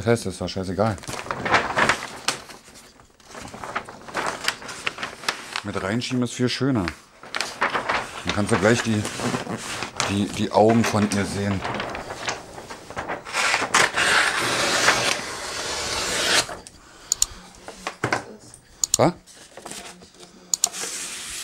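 Wrapping paper rustles and crinkles as it is unrolled.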